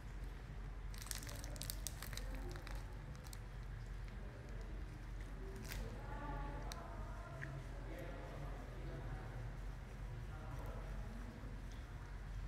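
A young woman bites into crunchy food and chews.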